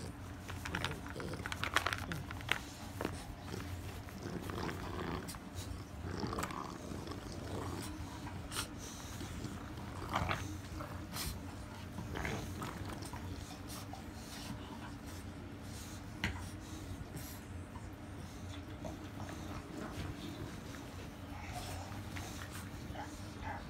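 A soft toy rustles as puppies pull at it.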